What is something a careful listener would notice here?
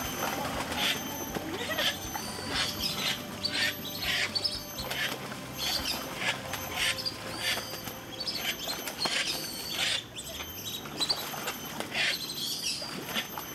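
Water trickles steadily.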